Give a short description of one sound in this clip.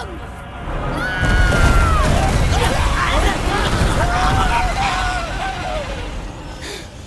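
A dark swarm surges up with a loud rushing roar.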